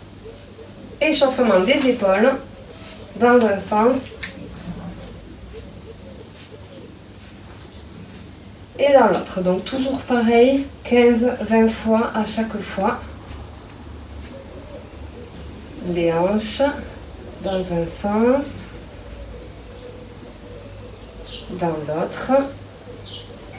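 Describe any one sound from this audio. A young woman speaks calmly in short bursts, close by.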